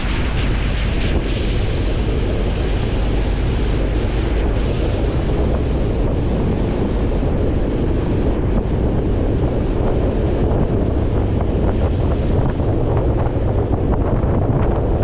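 Wind rushes loudly past an open vehicle window.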